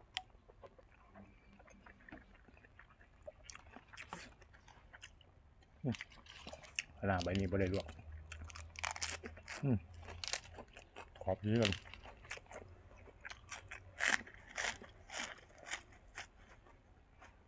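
A young man chews and smacks his lips loudly, close by.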